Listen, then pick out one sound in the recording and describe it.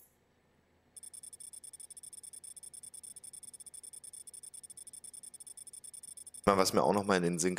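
An electronic counter ticks rapidly with a steady high tone.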